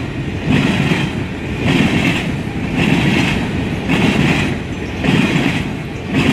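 Freight cars rumble past on the track close by.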